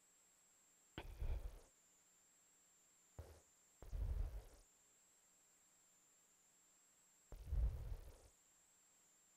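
A woman speaks slowly into a microphone, with long pauses.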